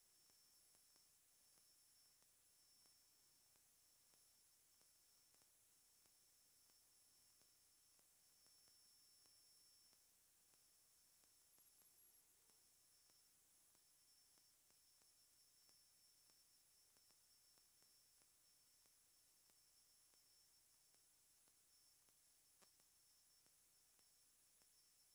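Cloth rustles as hands smooth and fold it.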